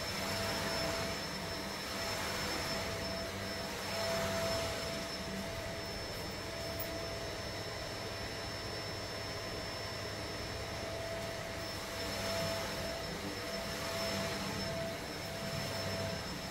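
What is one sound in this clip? A cleaning wand swishes back and forth over carpet in surges.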